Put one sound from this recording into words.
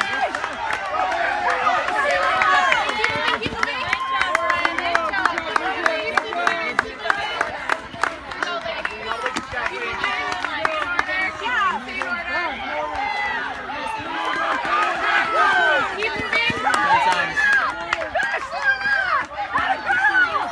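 A crowd of spectators cheers and shouts encouragement outdoors.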